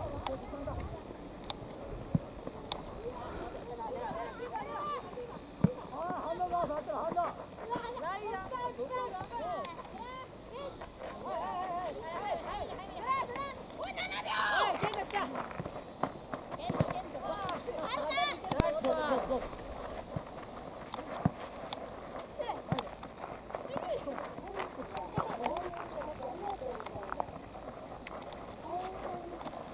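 Young boys shout and call out to each other across an open field outdoors.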